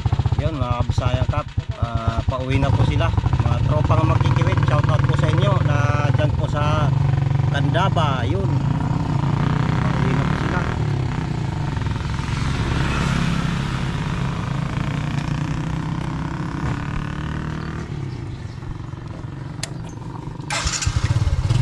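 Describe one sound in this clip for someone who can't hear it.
An engine rumbles steadily while driving.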